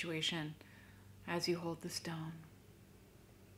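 A young woman speaks calmly and softly, close to a microphone.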